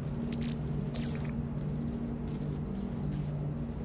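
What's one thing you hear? A soft interface chime sounds as a menu opens.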